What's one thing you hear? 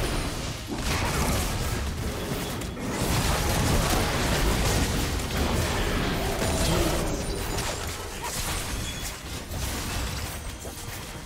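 Video game spells blast and crackle during a fight.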